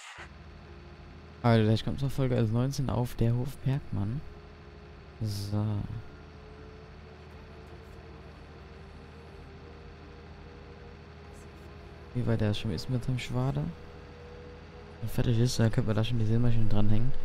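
A tractor engine hums steadily while driving.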